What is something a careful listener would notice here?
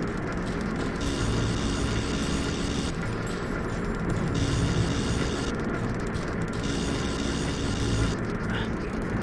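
An electric beam crackles and buzzes in bursts.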